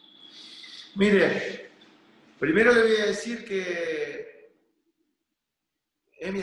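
A middle-aged man speaks calmly into a microphone over an online call.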